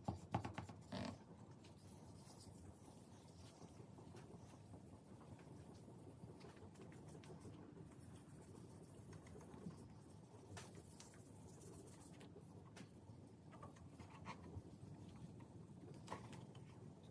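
Small knocks and taps sound against a hard surface.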